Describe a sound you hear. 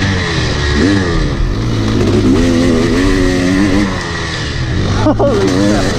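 A dirt bike engine revs and whines up close.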